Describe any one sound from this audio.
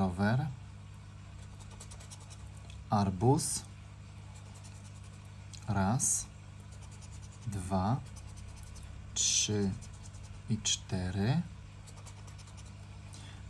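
A soft tool scratches across a stiff card.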